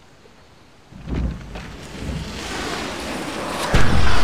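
A loud crackling burst erupts.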